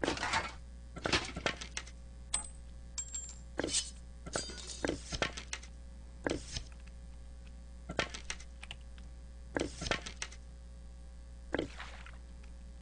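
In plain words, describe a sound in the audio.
Short game sound effects clatter as items are picked up and equipped.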